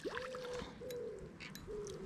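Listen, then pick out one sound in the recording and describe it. A fish splashes in water.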